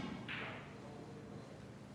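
A cue strikes a snooker ball with a sharp tap.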